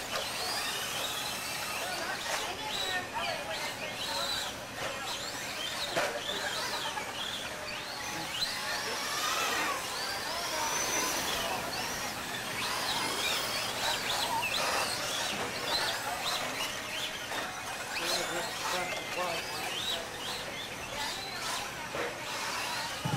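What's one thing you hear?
Toy car tyres scrape and crunch on dirt.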